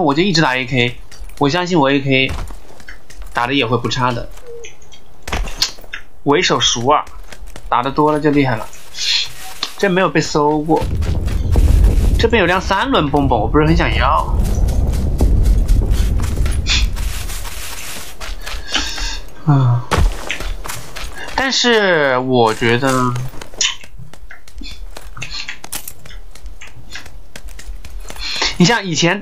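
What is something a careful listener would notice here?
Footsteps thud quickly across hard ground and dirt.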